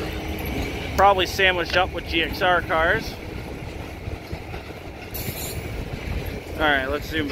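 Train wheels squeal sharply on the rails.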